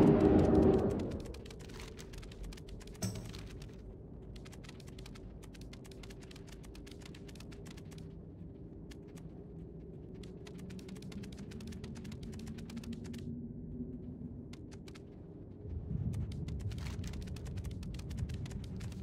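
Footsteps patter quickly on the ground as a game character runs.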